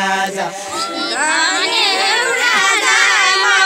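Women sing in high voices nearby.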